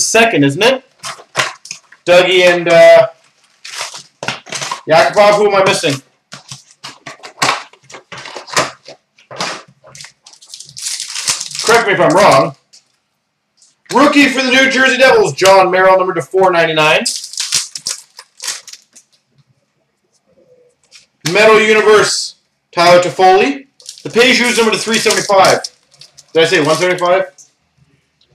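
Foil card wrappers crinkle and tear.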